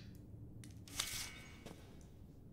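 An enamel basin clinks as it is lifted from a metal stand.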